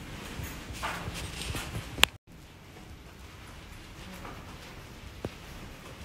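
Footsteps thud on carpet.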